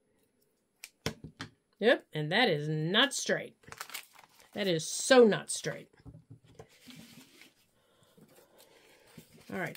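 Paper rustles as it is folded and slid on a table.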